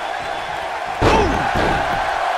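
A heavy body slams down onto a wrestling ring mat with a loud thud.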